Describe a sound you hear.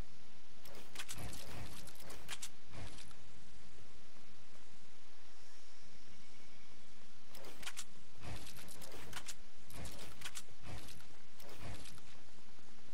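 Wooden building pieces snap into place with quick clattering knocks.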